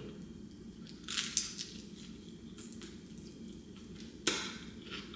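A young woman chews crunchy food.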